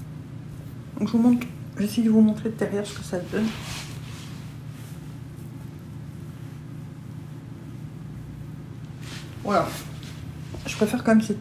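A woman talks calmly and close to the microphone.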